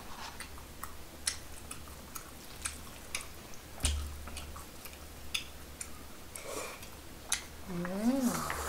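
Chopsticks click and tap against dishes.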